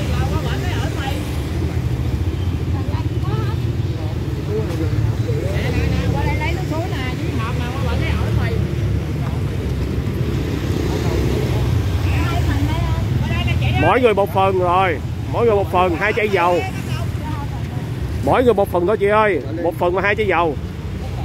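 Several people murmur and talk in the background outdoors.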